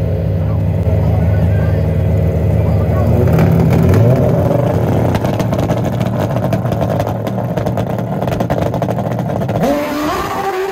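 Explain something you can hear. A motorcycle engine roars loudly and revs up.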